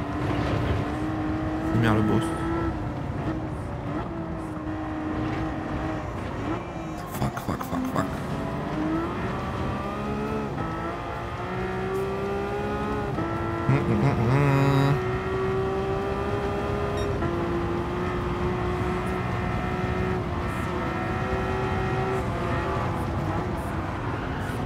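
A racing car engine roars steadily, rising and falling in pitch as it revs and shifts gears.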